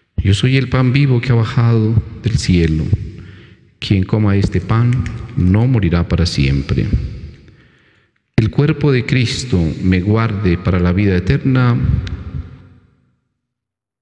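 A middle-aged man chants a prayer aloud in a steady voice, close to a microphone.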